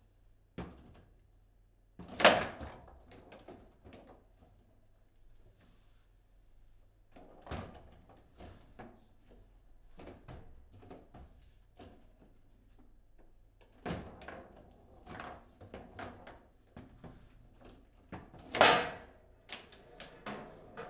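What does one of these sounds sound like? A foosball ball knocks sharply against plastic figures and the table walls.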